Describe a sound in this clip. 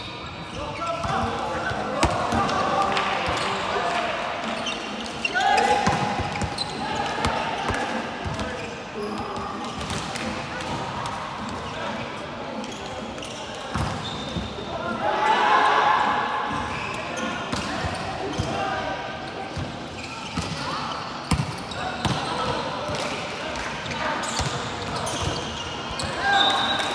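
Young men and women call out and chatter across a large echoing hall.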